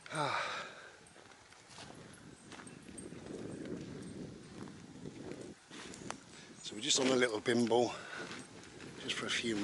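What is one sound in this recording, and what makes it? An older man talks calmly close by, outdoors.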